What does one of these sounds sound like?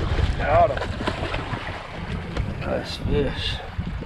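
A fish thrashes and splashes in the water.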